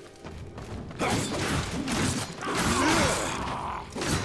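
A large creature growls and roars.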